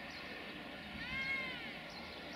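Train wheels squeal briefly on the rails.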